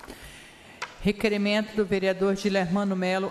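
A woman speaks into a microphone, reading out calmly.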